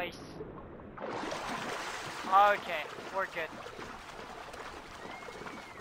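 Water splashes and sloshes as a swimmer strokes along the surface.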